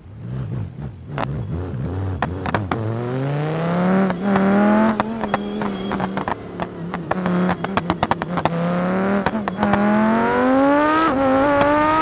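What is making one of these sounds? A car engine roars and revs, rising in pitch as it speeds up.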